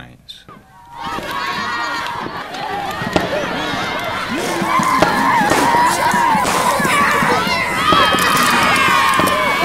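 A crowd of children chatter and shout excitedly nearby, outdoors.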